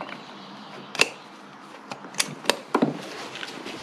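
Switches click on a scooter's handlebar.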